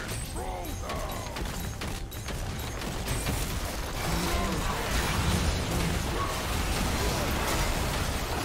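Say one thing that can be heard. Game spells and attacks crackle and boom in a busy fight.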